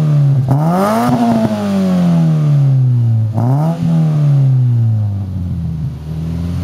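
A car engine revs up twice through a loud exhaust and settles back to a rumbling idle.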